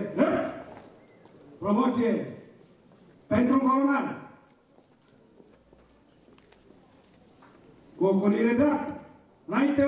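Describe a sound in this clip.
A man shouts commands through a loudspeaker outdoors, with echo.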